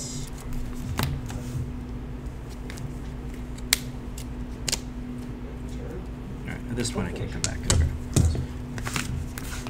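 Playing cards tap and slide on a soft mat.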